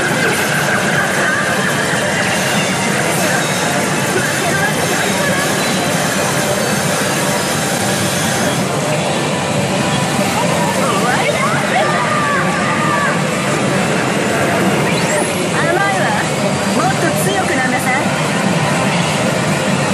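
Steel balls clatter steadily through a pachinko machine.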